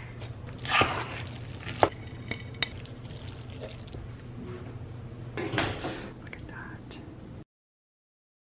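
A wooden spoon stirs and squelches through thick, cheesy pasta in a pot.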